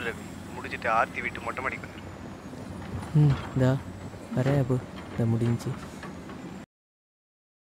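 A young man speaks softly on a phone, close by.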